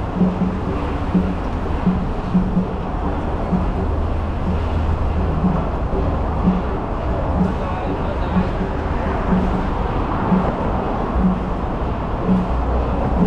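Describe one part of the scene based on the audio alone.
Footsteps thud at a steady walking pace on pavement.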